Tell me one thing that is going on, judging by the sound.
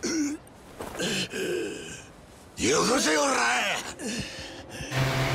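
A man yells in pain.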